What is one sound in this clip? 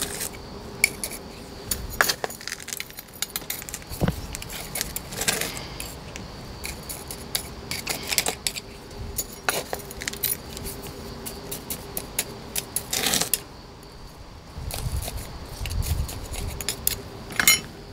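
Soil and gravel crunch and rustle under fingers pressing them down.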